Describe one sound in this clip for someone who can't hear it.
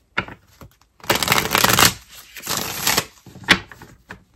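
Cards are shuffled and riffle with a rustling clatter.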